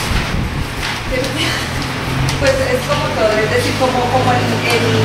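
A young woman speaks calmly in a room with a slight echo.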